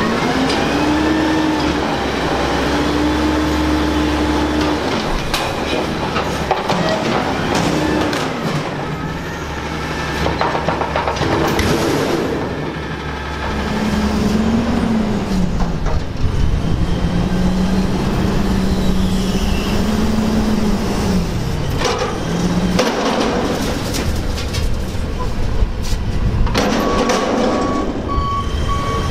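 Hydraulics whine, rising and falling as a garbage truck's lift arms move.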